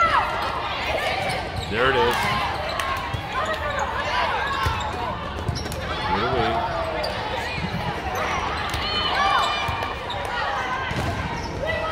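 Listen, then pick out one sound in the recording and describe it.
A volleyball is struck with sharp smacks, again and again.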